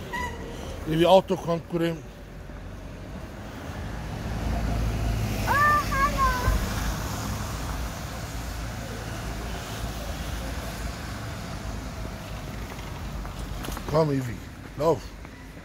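A young child calls out nearby.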